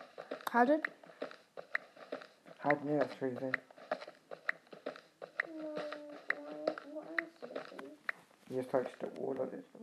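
A pickaxe taps and chips at stone over and over.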